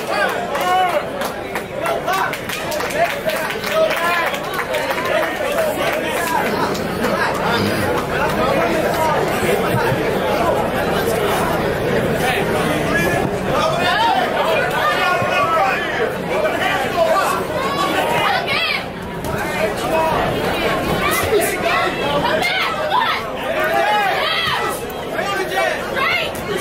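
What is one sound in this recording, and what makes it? A crowd chatters and calls out throughout in an echoing hall.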